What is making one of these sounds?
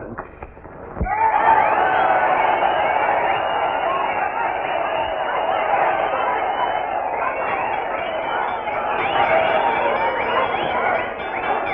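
A large crowd cheers and shouts loudly in a big hall.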